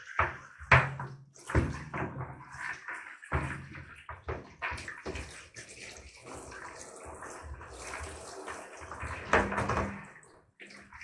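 Plastic knocks and clatters against a bathtub.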